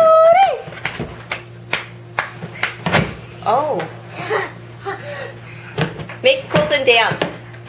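Soft foam blocks thump and tumble onto the floor.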